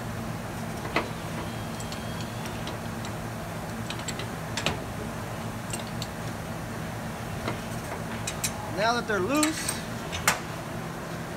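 Metal clicks and knocks.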